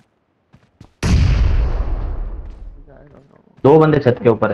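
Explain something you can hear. A smoke grenade bursts and hisses, then fades.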